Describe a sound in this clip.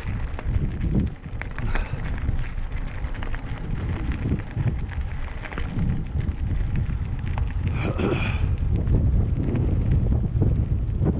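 Wind rumbles heavily against the microphone outdoors.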